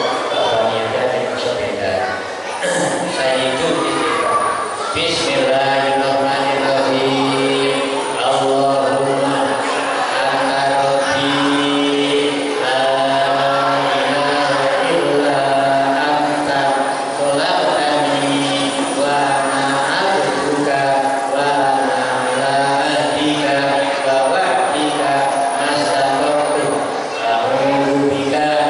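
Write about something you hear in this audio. A middle-aged man chants in a long, drawn-out melodic voice through a microphone and loudspeakers.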